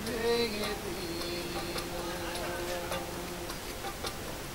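A man sings with a strong, sustained voice close by.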